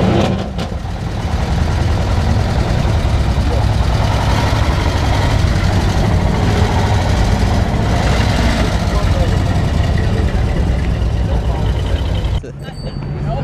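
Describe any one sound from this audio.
A vintage car engine idles and chugs as the car drives slowly past.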